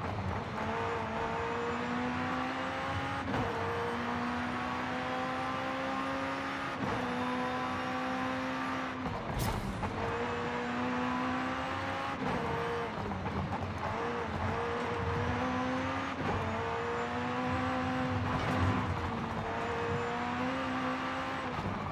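Tyres roar steadily on the road at high speed.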